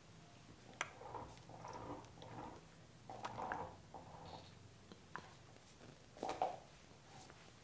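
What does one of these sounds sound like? A young man speaks calmly and quietly nearby.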